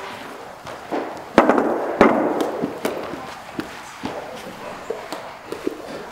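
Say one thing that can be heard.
Footsteps tap on a wooden stage.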